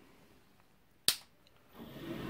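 A wall switch clicks.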